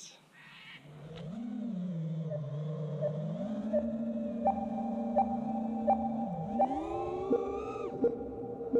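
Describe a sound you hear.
A small drone's motors whir steadily, then rise in pitch.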